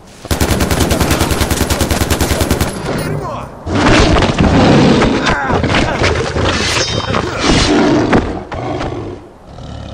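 A tiger snarls and roars close by.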